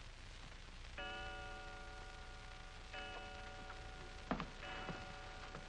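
A clock chimes slowly.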